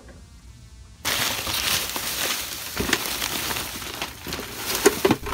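A plastic bag crinkles and rustles close by.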